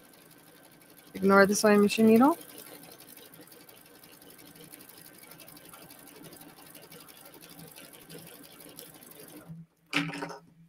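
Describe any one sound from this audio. A sewing machine runs steadily, stitching fast.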